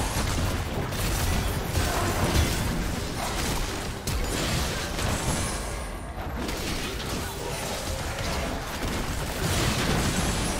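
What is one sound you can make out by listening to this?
Magic blasts and clashing weapons burst in a busy fantasy battle.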